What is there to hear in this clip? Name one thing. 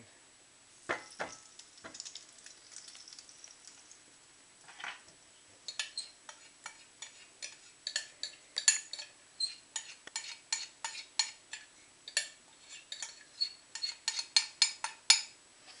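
Batter pours and splashes into a pan.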